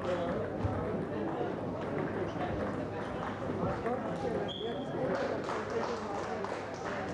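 Table tennis balls click against paddles and tables.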